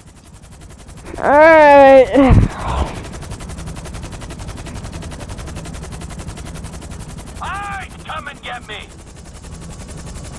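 A helicopter's rotor thrums steadily.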